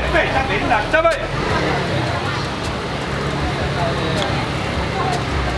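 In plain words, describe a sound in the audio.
People chatter in a busy street.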